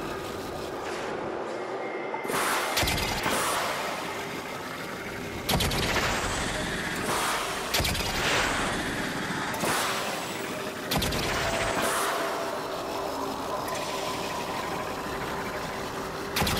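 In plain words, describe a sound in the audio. A spacecraft engine roars and whooshes in repeated bursts of thrust.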